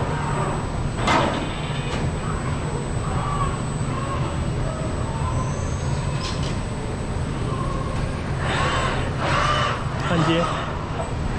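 Industrial robot arms whir as their servo motors move them.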